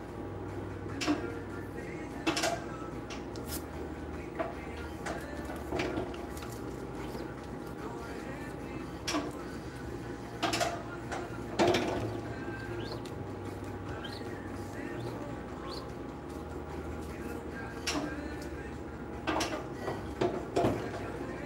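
A metal frame clacks as it is lifted and lowered.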